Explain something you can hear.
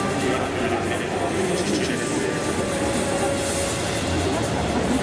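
A crowd chatters and cheers in a large stadium.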